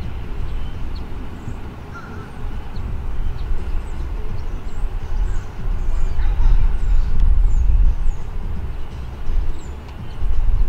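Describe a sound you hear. Wind blows and rumbles across the microphone outdoors.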